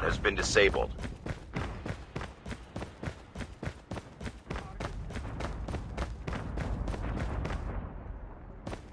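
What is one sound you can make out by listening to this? Quick footsteps tap on stone.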